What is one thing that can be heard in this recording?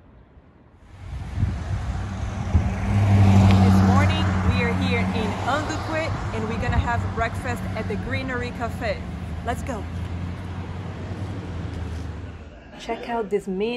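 A young woman speaks close up outdoors with animation.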